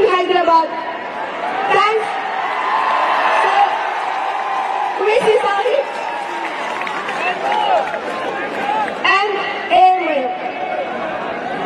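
A crowd cheers and shouts loudly.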